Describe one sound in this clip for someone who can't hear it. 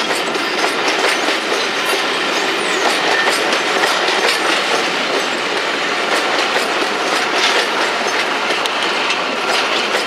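Train carriages rumble past steadily on the rails.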